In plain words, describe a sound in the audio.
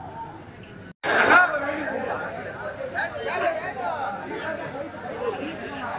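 A crowd of young men chatter and call out excitedly at close range.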